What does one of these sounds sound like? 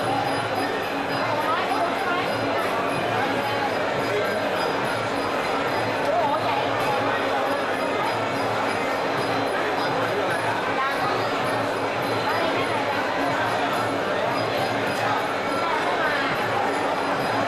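A large crowd cheers and shouts steadily in a big hall.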